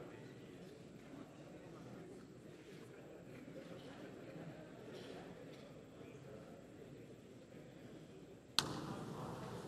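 A crowd murmurs faintly in a large hall.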